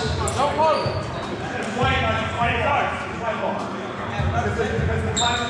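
Men call out and talk in a large echoing hall.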